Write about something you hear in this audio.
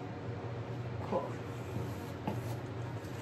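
A palette knife scrapes and taps.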